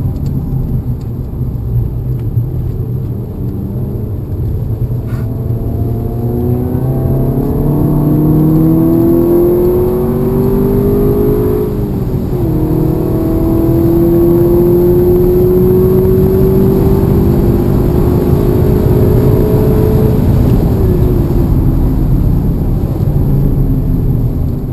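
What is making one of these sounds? A car engine revs up and down as gears shift, heard from inside the car.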